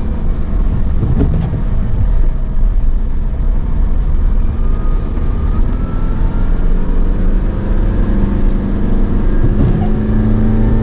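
A windshield wiper swishes across the glass.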